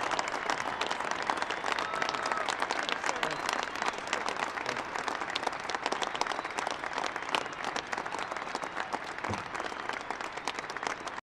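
A large crowd applauds loudly outdoors.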